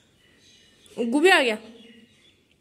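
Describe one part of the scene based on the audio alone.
A toddler squeals loudly.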